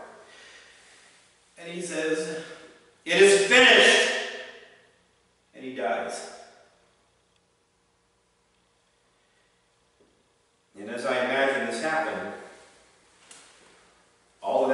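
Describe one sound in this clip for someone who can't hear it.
A middle-aged man preaches forcefully in bursts, with pauses, in a room with some echo.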